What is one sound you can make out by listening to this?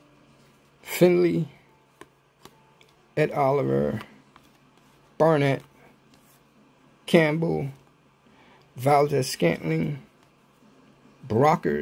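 Trading cards slide against each other as they are shuffled.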